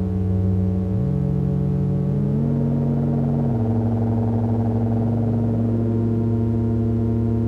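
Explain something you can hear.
Low synthesizer notes step to new pitches as patch cables are moved.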